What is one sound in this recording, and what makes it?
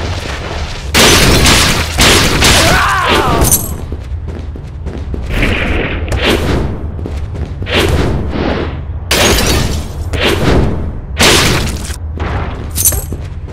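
Sword slashes whoosh and strike enemies in bursts.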